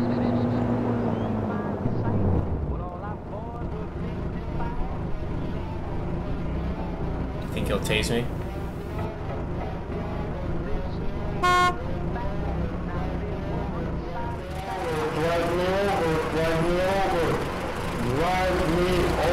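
A car engine hums steadily.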